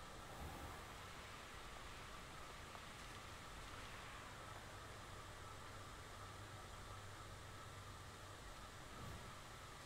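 Wind rushes steadily past in flight.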